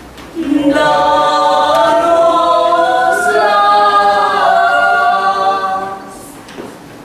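A woman sings a long, high line in a large echoing hall.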